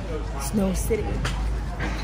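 A young woman speaks excitedly close by.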